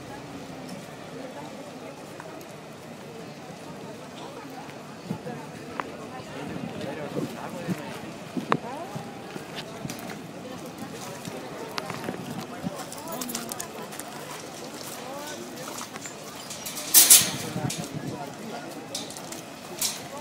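A crowd of men and women murmurs and talks outdoors.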